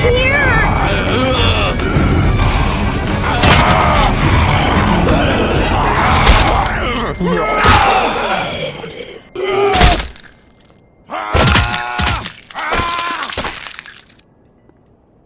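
A zombie snarls and growls loudly.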